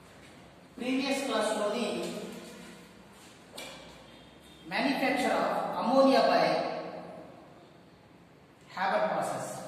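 A man speaks clearly and steadily, close by, in a room with a slight echo.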